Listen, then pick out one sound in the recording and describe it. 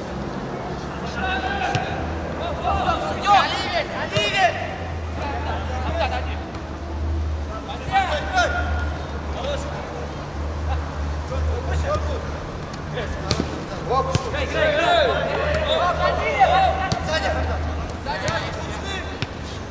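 Players shout to each other across an open pitch.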